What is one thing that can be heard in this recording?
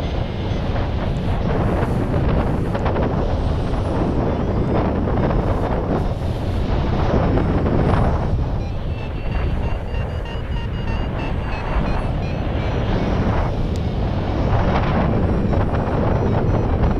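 Wind roars and buffets loudly past the microphone high in the open air.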